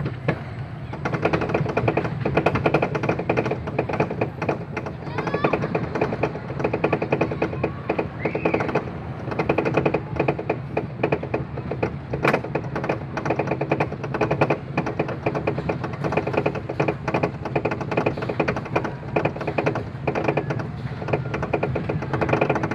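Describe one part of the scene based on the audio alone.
A roller coaster's lift chain clanks rapidly and steadily as the car climbs.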